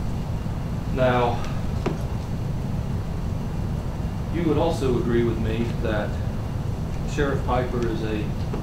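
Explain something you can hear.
An elderly woman speaks calmly in short bursts nearby.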